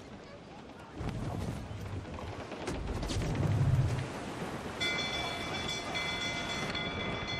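Waves splash against a ship's hull.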